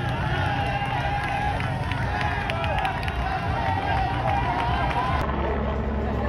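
A crowd cheers and shouts loudly along a roadside.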